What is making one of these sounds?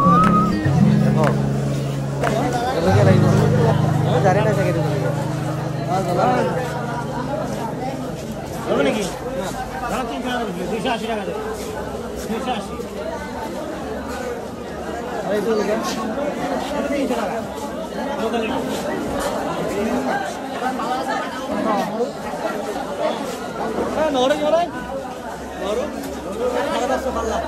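Many men talk all around in a busy, echoing indoor crowd.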